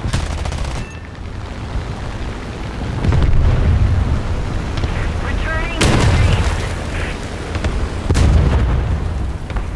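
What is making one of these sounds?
Explosions boom with deep rumbles.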